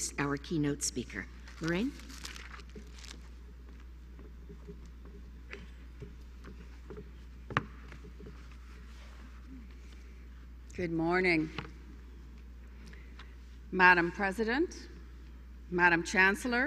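An elderly woman speaks calmly into a microphone, heard through loudspeakers in a large hall.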